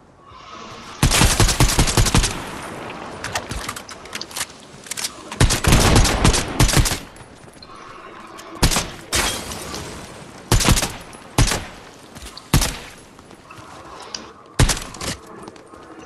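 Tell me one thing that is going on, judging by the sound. Gunshots fire in rapid bursts, with some single sharp shots.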